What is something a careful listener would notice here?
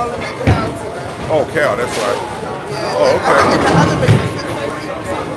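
Young people talk and chatter close by.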